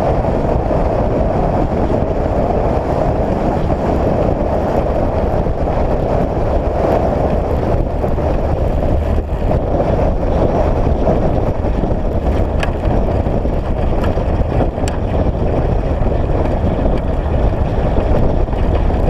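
Tyres crunch and rumble steadily over a gravel road.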